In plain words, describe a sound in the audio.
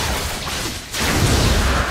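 A deep magical blast booms.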